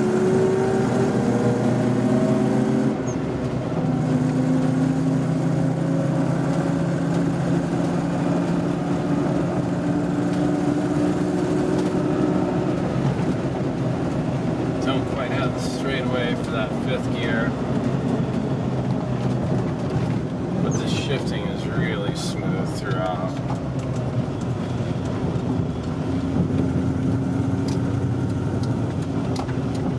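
An old vehicle's engine drones loudly from inside the cab.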